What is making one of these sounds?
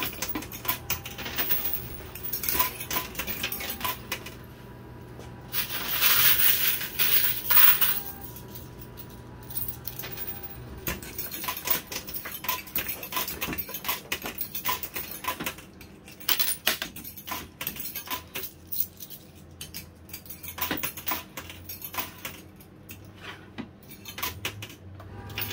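A coin pusher machine hums and whirs steadily.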